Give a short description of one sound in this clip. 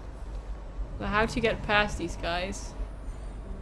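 A young woman speaks briefly and animatedly into a microphone.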